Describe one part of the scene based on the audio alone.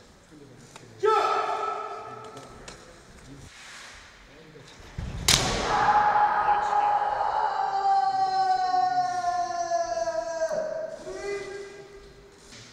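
Men let out long, loud battle cries in an echoing hall.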